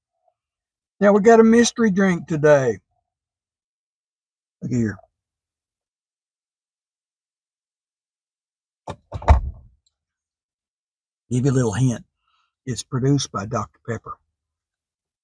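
An elderly man speaks calmly close to a microphone.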